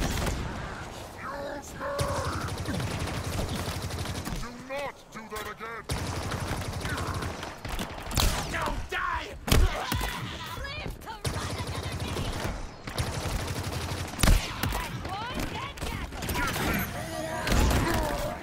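A spiked energy gun fires rapid bursts of crystal shards.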